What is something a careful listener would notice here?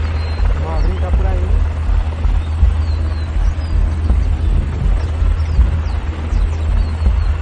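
A heavy vehicle's engine rumbles low and steadily.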